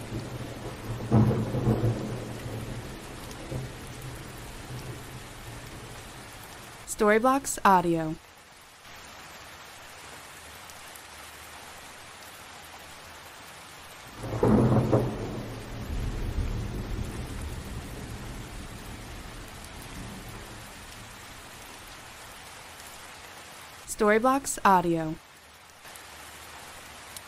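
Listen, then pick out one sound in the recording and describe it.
Steady rain patters against a window pane.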